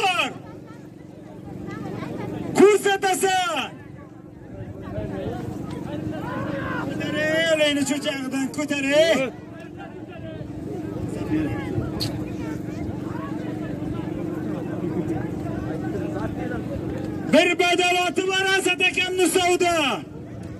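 A large crowd of men talks and murmurs outdoors.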